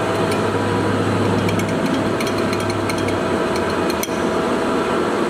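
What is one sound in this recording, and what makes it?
A metal handwheel clicks and rattles as it is turned.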